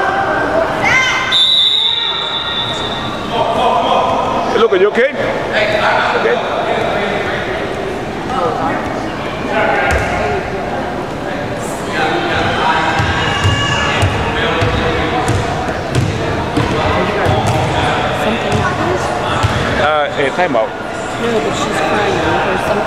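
Children shout and call out across an echoing gym.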